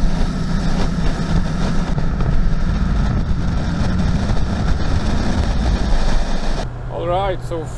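Wind and road noise roar past a fast-moving vehicle.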